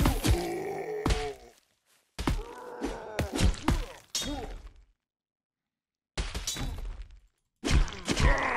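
Blades strike and clash in sharp metallic hits.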